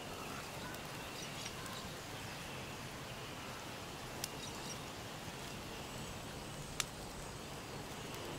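Boots step on damp forest ground.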